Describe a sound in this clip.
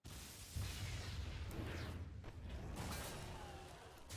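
Game effects whoosh and boom.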